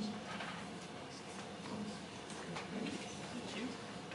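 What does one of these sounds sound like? A man speaks briefly through a microphone in a room.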